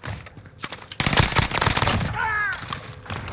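A rifle fires shots.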